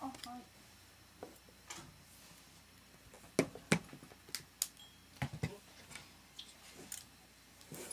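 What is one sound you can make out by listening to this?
Small clicks and knocks come from someone handling a saxophone mouthpiece.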